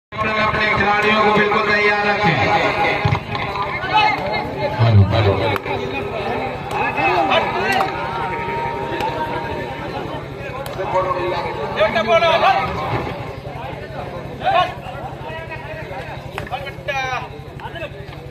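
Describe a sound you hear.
A large crowd of spectators chatters and shouts outdoors.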